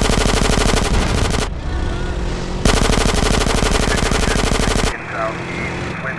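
A motorcycle engine roars steadily.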